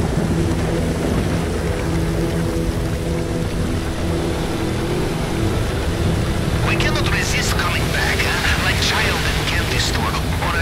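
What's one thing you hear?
A speedboat engine roars steadily.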